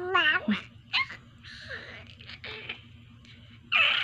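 A baby laughs.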